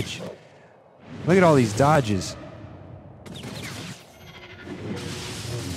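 Lightsabers clash with buzzing, crackling strikes.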